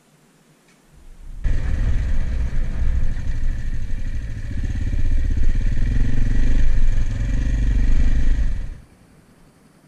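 A motorcycle engine rumbles loudly while riding over a rough track.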